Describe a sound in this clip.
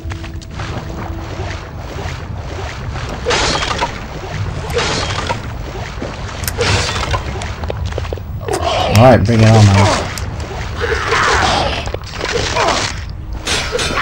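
Sword blows swish and clang in a fight.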